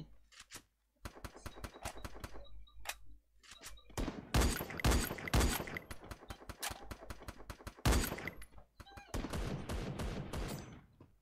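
Rapid gunshots crack from a video game.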